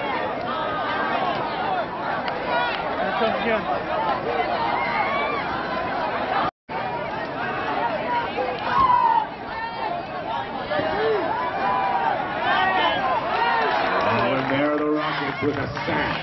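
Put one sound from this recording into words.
A crowd of players and spectators shouts and cheers outdoors.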